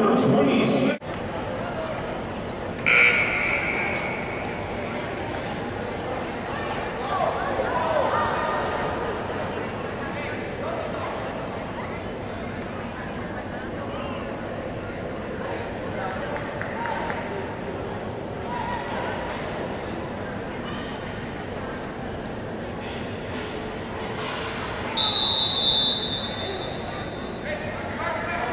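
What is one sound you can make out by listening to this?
Voices of young players and coaches chatter in a large echoing hall.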